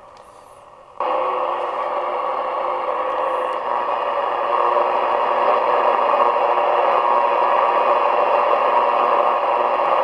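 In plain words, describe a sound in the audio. A radio plays a steady broadcast signal loudly.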